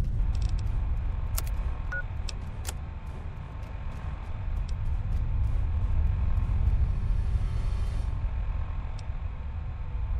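Soft electronic clicks tick as menu items are chosen.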